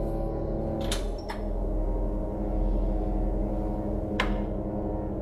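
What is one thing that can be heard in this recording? A door latch clicks as a door swings open.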